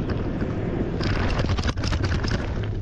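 Tyres crunch and rattle over dirt and gravel.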